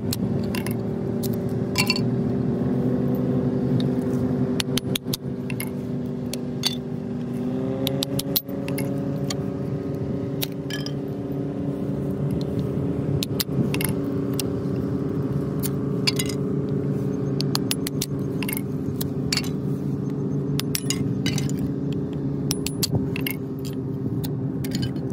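A hammer strikes a wooden stick, splitting it with sharp knocks.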